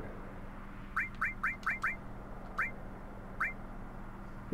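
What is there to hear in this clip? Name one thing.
Short, high electronic blips sound in quick succession.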